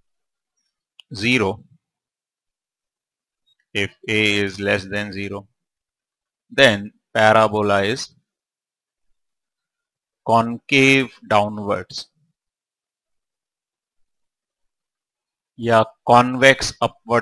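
A man speaks calmly in short phrases with pauses, close to a microphone.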